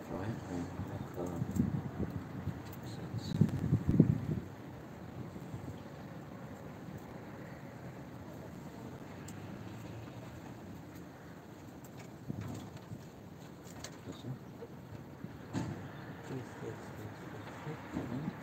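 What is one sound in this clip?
Wind gusts outdoors, buffeting the microphone.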